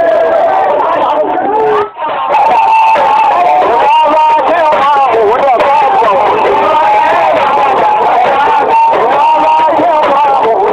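A crowd of men and women chant and shout loudly close by.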